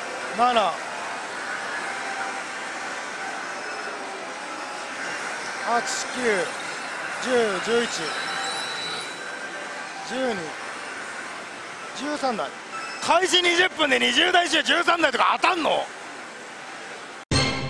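Slot machines clatter and chime in a busy, noisy hall.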